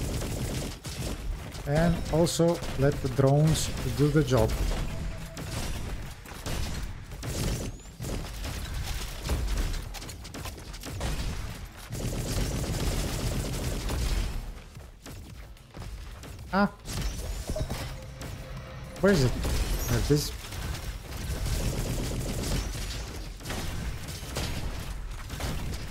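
Video game guns fire in sharp, repeated shots.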